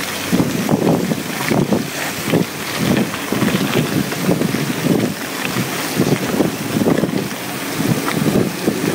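Wind buffets loudly against a microphone.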